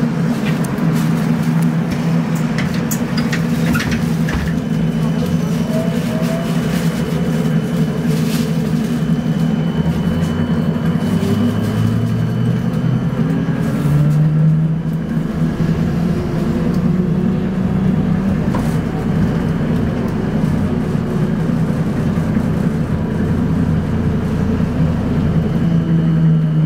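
A vehicle engine hums steadily from inside while driving.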